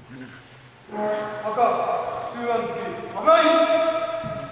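A man calls out loudly in a long, drawn-out voice.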